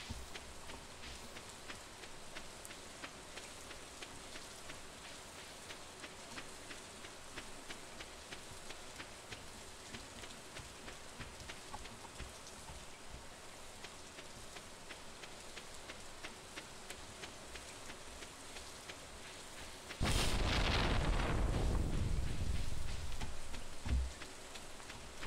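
Footsteps patter quickly on a dirt path.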